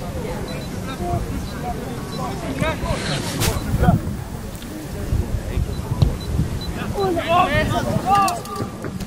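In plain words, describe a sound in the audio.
Young male players shout and call to each other across an open field.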